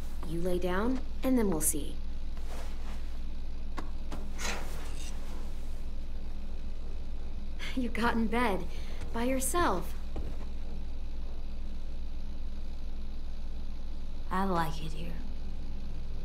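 A young woman speaks softly and calmly.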